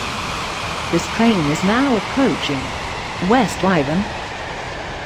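A train horn sounds in a few short, wavering blasts.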